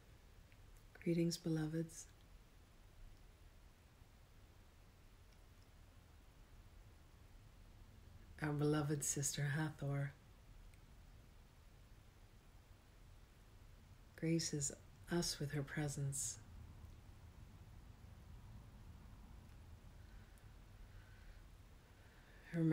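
A middle-aged woman speaks softly and calmly close to the microphone, in short phrases with long pauses.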